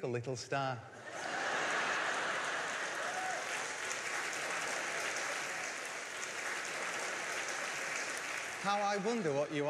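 A large audience laughs and cheers loudly.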